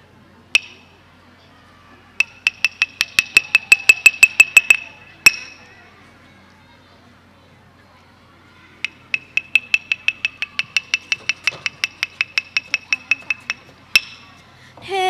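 Small hand cymbals clink in quick bursts of rhythm.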